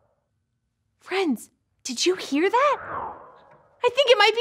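A young woman speaks with lively, expressive animation, close by.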